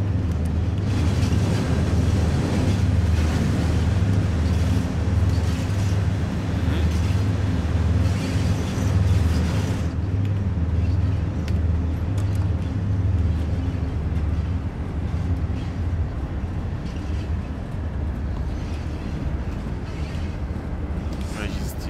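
A diesel locomotive engine rumbles with a steady, low drone.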